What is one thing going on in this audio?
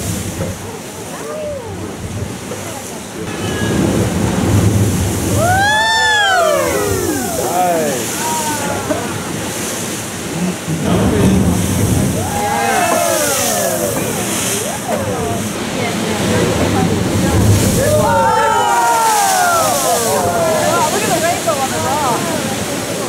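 Waves surge and crash against rocks below.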